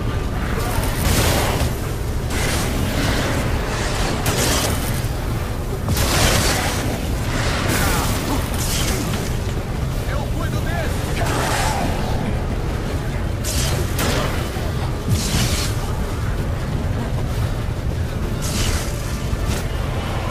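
Fire bombs burst with loud whooshes.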